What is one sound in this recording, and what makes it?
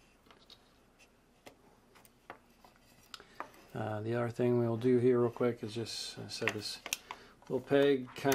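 Plastic parts click and tap softly as they are handled.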